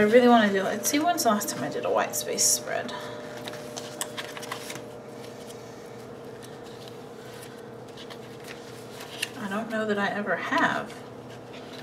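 Paper pages rustle and flip.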